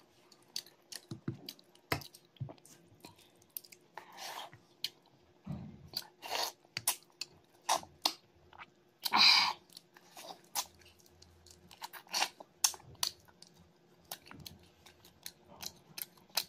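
Fingers squish and mix soft rice close to a microphone.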